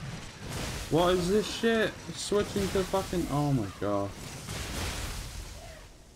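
Blades clash and electricity crackles in a fight.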